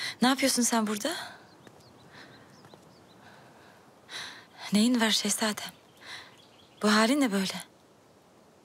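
A young woman speaks in an urgent, questioning voice up close.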